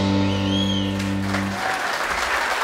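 A double bass plays a low sustained note.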